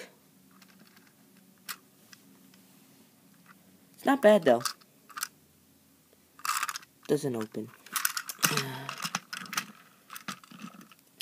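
A small plastic toy wagon clicks and rattles as it is handled.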